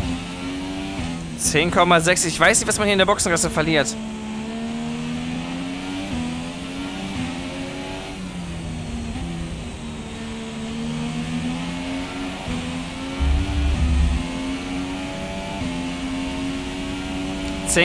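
A racing car engine whines loudly, its pitch rising and dropping through gear changes.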